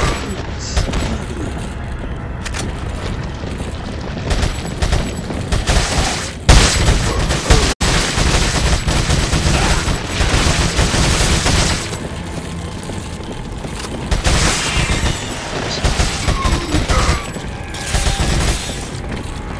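A rifle fires shot after shot in rapid bursts.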